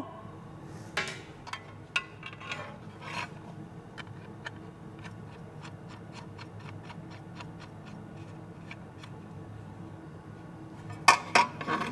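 Small metal parts click and tap as a man handles them.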